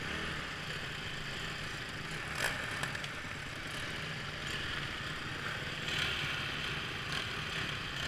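Dirt bike engines idle and rumble close by.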